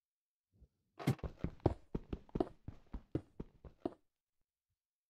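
Gravel crunches in quick repeated bursts.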